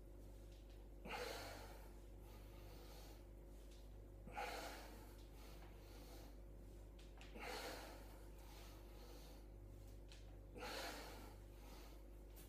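A man exhales hard in rhythm while exercising.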